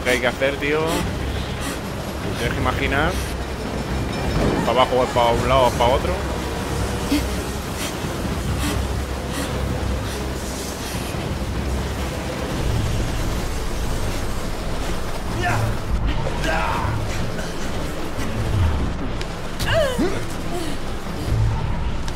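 A train rumbles along steadily.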